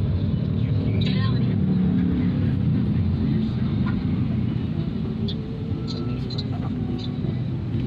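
Traffic passes outside the car.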